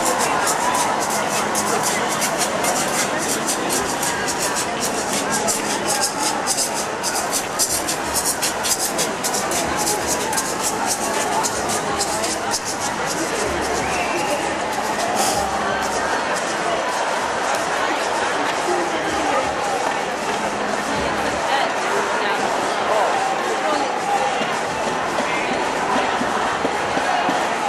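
Many people talk and murmur nearby.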